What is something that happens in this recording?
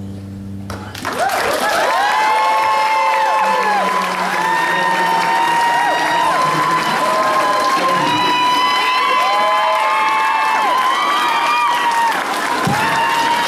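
A young man sings into a microphone.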